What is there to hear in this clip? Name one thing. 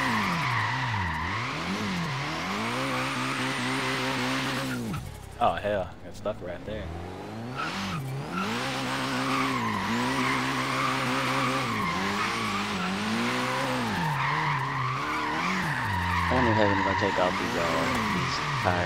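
A car engine revs hard, rising and falling as gears shift.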